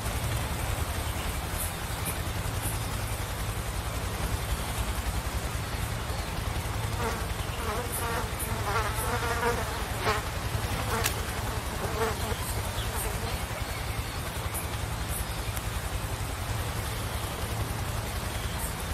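Leafy branches rustle and swish as someone pushes through dense bushes.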